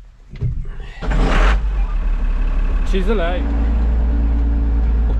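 A tractor engine starts and runs with a steady low rumble.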